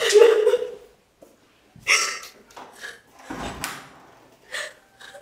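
A young woman sobs and cries out in distress.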